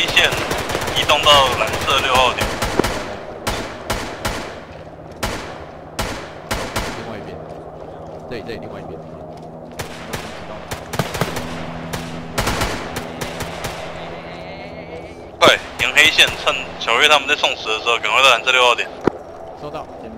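Gunshots crack in quick bursts, some close and some farther off.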